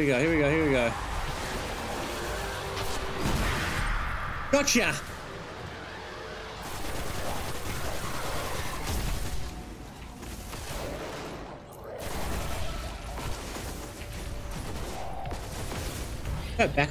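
Gunshots and blasts from a video game ring out.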